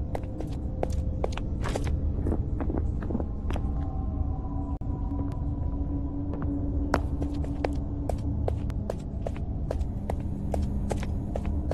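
Footsteps clank steadily on a hollow metal floor.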